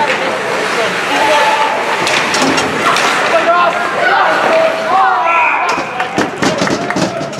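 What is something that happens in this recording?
Skates scrape across the ice in an echoing rink.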